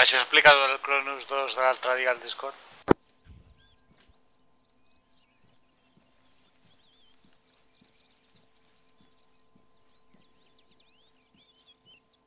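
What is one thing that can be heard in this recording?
Footsteps rustle over dry leaves on the forest floor.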